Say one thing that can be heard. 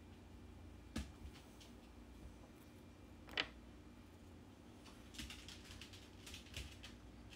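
A tool taps and scrapes lightly on a hard nail tip.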